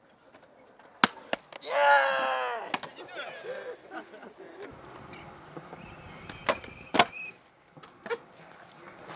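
A skateboard clacks sharply against concrete.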